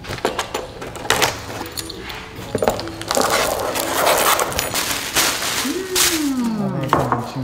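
Cardboard scrapes and thuds as a box is opened.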